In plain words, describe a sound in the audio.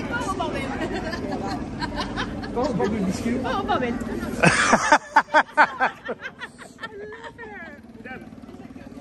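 A woman talks and laughs cheerfully close by.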